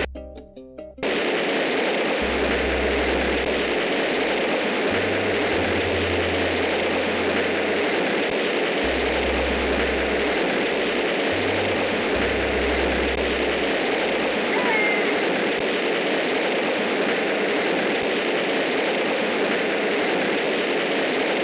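Rocket engines roar steadily.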